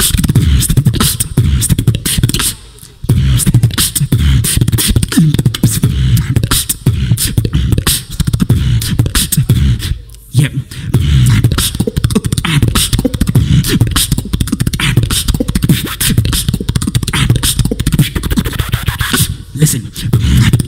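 A young man beatboxes into a microphone, with fast, punchy kick and snare sounds through loudspeakers.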